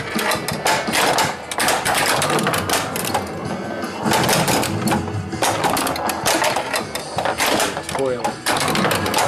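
A pinball machine plays loud electronic music and sound effects.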